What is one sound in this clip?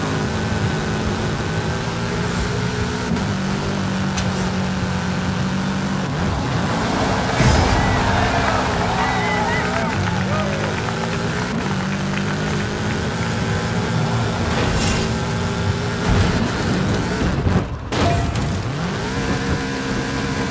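A car engine revs and drones steadily, shifting gears.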